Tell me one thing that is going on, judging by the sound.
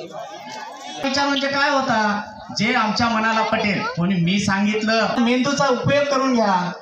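A man speaks loudly to a gathering, heard through a microphone.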